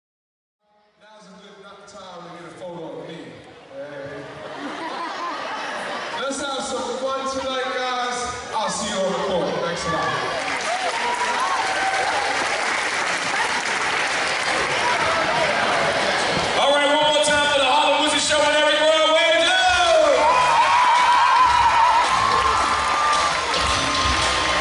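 A man speaks with animation through a microphone and loudspeaker in a large echoing hall.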